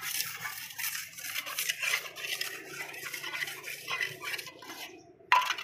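A trowel scrapes and smooths wet cement.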